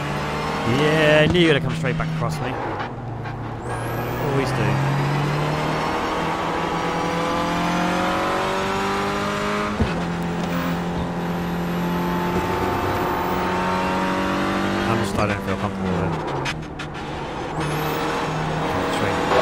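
A racing car engine revs up and down as the car shifts through gears.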